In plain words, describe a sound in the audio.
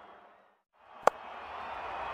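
A bat strikes a ball with a sharp crack.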